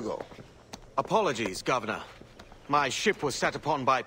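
A younger man answers apologetically.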